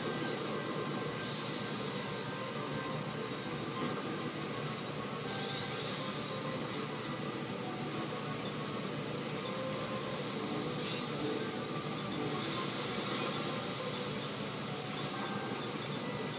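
Futuristic racing engines whine and roar steadily.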